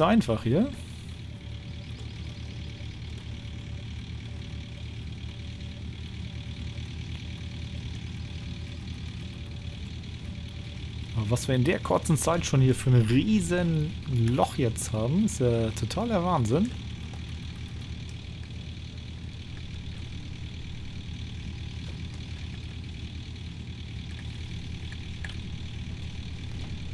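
A heavy diesel engine drones steadily.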